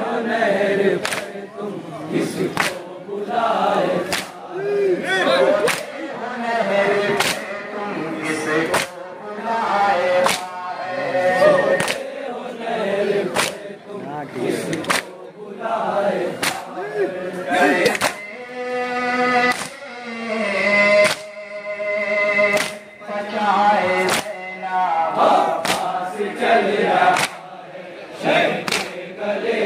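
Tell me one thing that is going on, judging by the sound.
Men beat their chests with their hands in a loud, steady rhythm.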